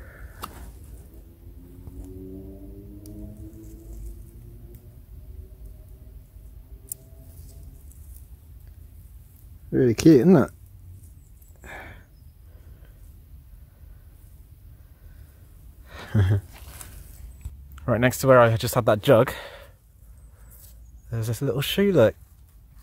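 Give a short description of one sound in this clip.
A gloved hand rubs and crumbles dry soil.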